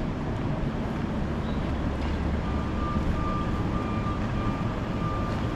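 Footsteps walk on pavement.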